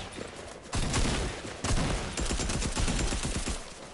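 Gunshots crack in quick bursts from a game.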